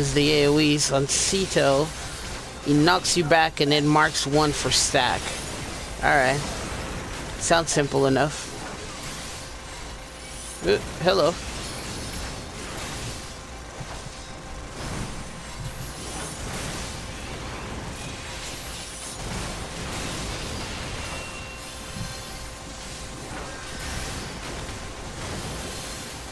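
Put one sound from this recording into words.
Sword strikes and magic blasts clash in a fast battle.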